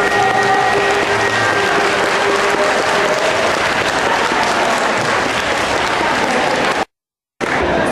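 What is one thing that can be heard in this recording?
Music plays through loudspeakers in a large hall.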